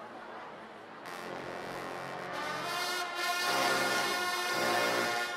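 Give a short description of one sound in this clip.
A large brass band starts playing loudly in an echoing hall.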